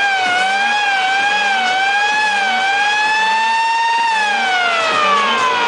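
Loud electronic music plays, with a high synth tone that wavers in pitch and then slides down.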